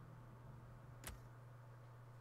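A soft electronic click sounds.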